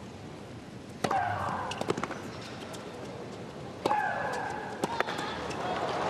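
A tennis ball is struck sharply by rackets in a rally.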